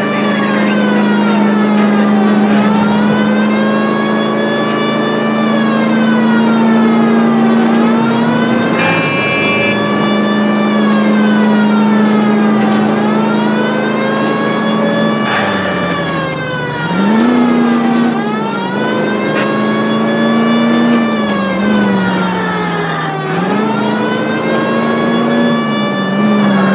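A car engine hums steadily, rising in pitch and dropping with each gear change.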